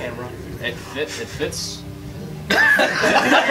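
A young man speaks casually.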